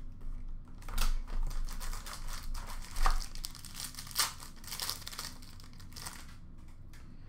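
A foil card pack crinkles and tears as hands open it.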